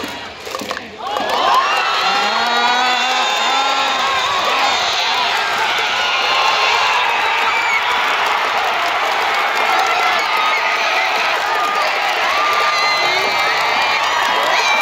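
A huge crowd roars and cheers loudly.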